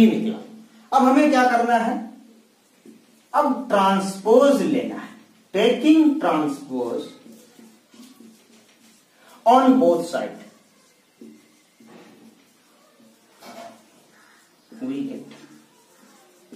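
A young man speaks clearly and steadily, as if explaining, close to a microphone.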